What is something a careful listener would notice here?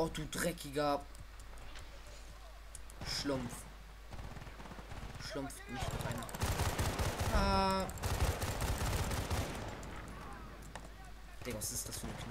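A rifle magazine clicks as it is reloaded.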